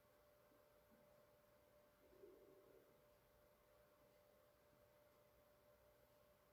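A paintbrush softly brushes across canvas.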